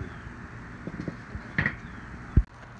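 A metal grill lid clanks as it is closed.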